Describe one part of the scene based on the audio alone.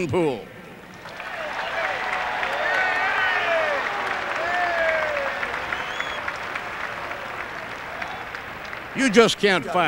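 A large crowd cheers and applauds in a stadium.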